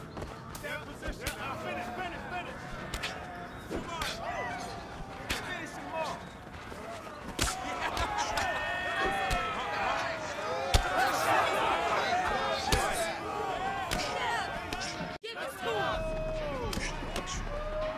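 A crowd cheers and shouts around the fighters.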